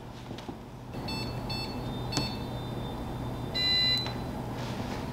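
An electronic keypad beeps as its buttons are pressed.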